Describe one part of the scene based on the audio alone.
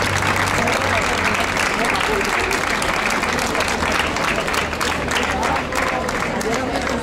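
A crowd claps outdoors.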